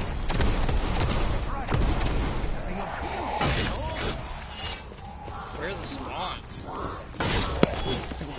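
A weapon fires with loud crackling blasts.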